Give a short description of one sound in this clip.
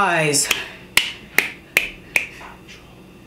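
A young woman claps her hands several times.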